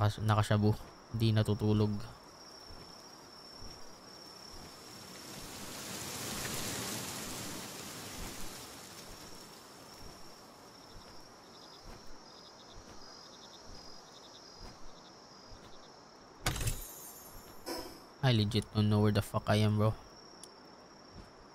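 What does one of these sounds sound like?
A winged creature beats its wings.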